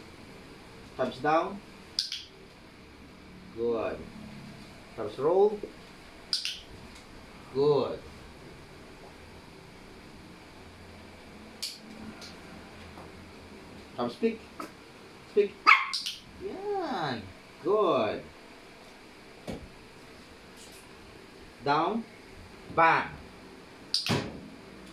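A man speaks playfully to a dog nearby.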